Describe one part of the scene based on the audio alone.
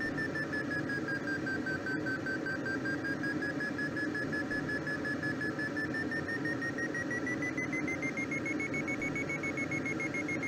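A glider's variometer beeps rapidly, its pitch dipping slightly and then rising.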